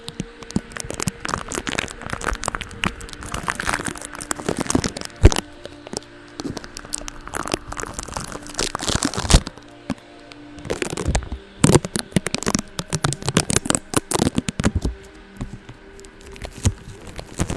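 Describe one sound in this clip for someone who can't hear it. A brush scratches and swishes right against a microphone, up close.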